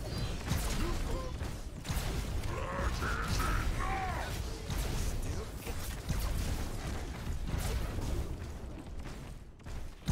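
Gunfire and energy blasts crackle and boom in rapid bursts.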